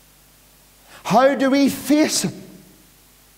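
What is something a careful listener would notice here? A middle-aged man speaks emphatically into a microphone in an echoing hall.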